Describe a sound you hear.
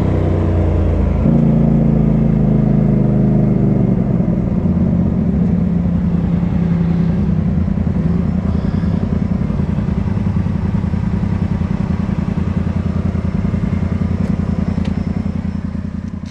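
An off-road vehicle's engine rumbles and revs close by.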